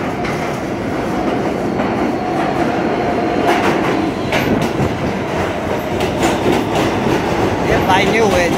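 A subway train rumbles into the station and rushes past, loud and echoing.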